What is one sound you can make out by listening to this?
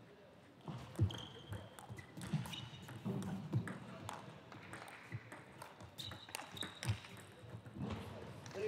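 A table tennis ball clicks sharply off paddles and the table in a quick rally.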